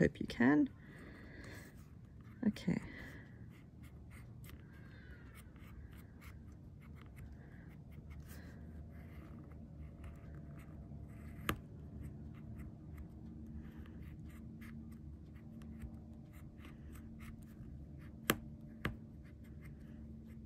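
A metal stylus scratches and ticks over thin foil.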